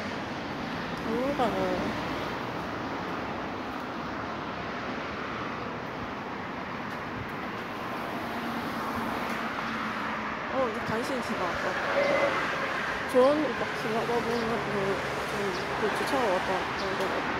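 A young man talks close to the microphone.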